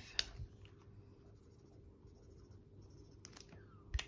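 A marker pen squeaks faintly on paper.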